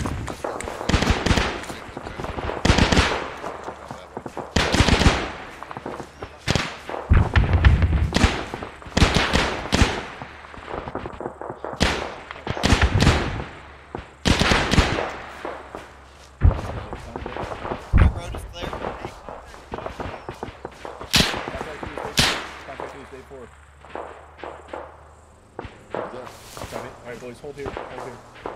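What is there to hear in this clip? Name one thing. Footsteps swish through tall dry grass.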